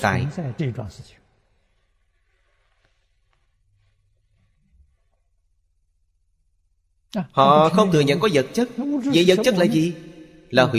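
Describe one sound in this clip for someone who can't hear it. An elderly man speaks calmly and warmly into a close microphone.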